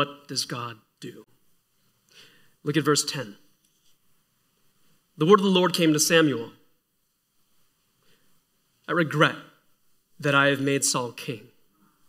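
A young man speaks calmly into a microphone, with short pauses between phrases.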